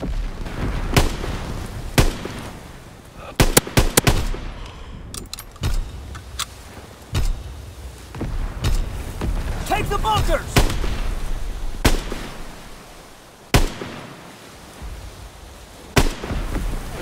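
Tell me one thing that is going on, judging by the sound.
Rifle shots crack loudly, one at a time, with a short echo.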